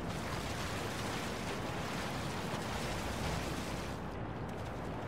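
Water splashes as a man wades through it.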